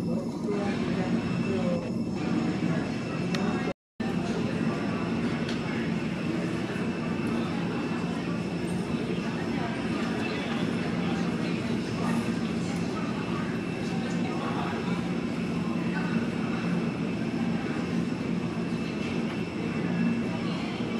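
A large jet airliner's engines hum and whine steadily as it taxis past.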